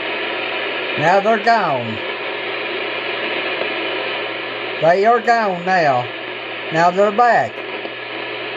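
Warbling, gliding tones sound from a radio speaker in three short bursts.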